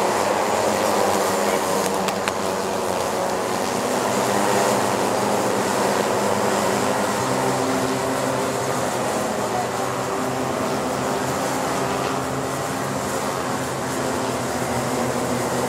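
Kart engines buzz and whine loudly as karts race past.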